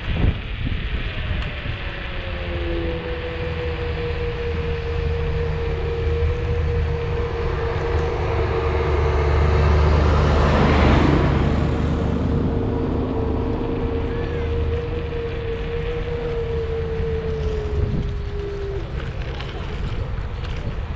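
Tyres hum steadily on smooth asphalt.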